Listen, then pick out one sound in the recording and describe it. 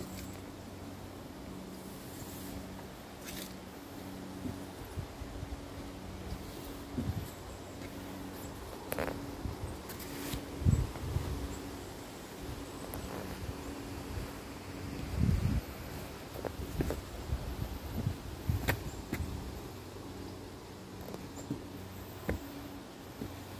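Footsteps thud on wooden stairs, climbing steadily.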